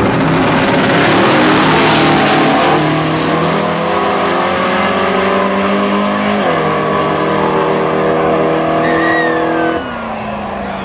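Race car engines roar and rise in pitch as they speed away down the track.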